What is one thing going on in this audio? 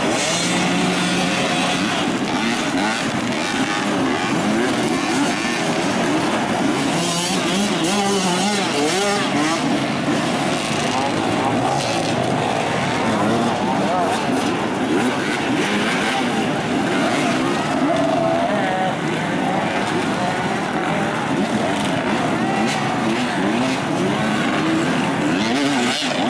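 Dirt bike engines rev and whine loudly.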